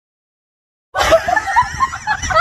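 A woman exclaims loudly with animation, close by.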